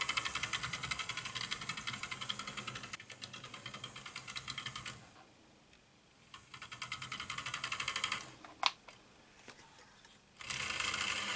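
A small electric toy train whirs and clatters rapidly along its track, passing close by.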